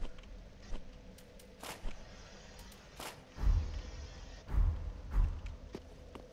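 Menu selections click sharply.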